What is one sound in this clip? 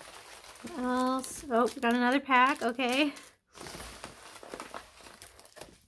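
Paper packaging rustles and crinkles as it is handled.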